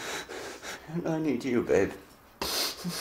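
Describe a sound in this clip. A man groans in pain close by.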